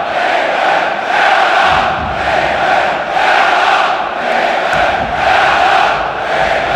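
A large crowd of football fans chants in rhythm in a large stadium.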